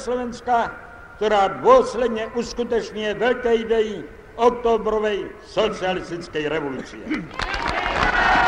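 An elderly man reads out a speech through a loudspeaker.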